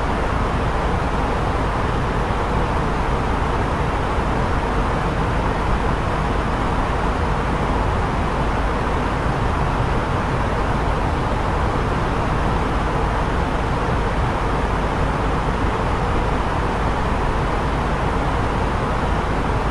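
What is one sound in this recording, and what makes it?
Jet engines roar steadily.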